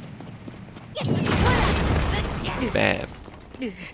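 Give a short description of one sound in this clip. An explosion booms with a rumbling roar.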